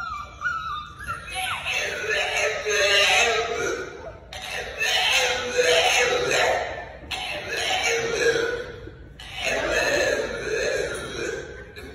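A puppy howls loudly and repeatedly.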